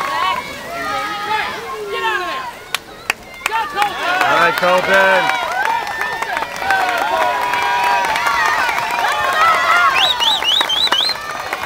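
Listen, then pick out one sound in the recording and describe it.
Swimmers splash through the water.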